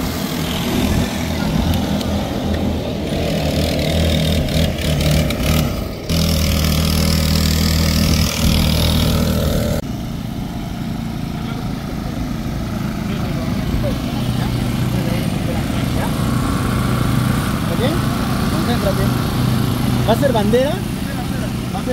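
Small kart engines idle and buzz steadily close by.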